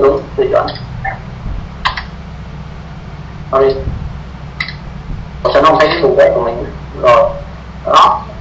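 A man speaks in short bursts, heard through an online call.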